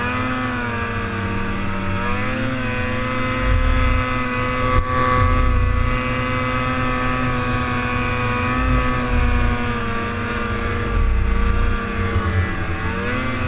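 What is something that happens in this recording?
A snowmobile engine roars steadily up close, its pitch rising and falling.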